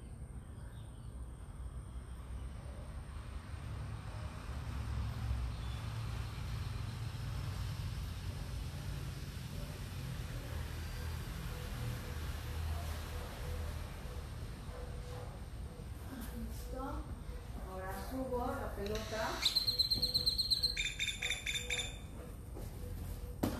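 Wind rumbles softly outdoors.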